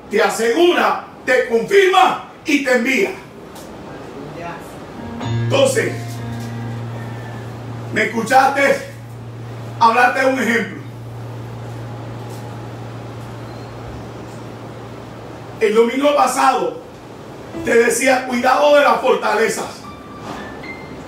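A middle-aged man preaches loudly and with animation close to a microphone.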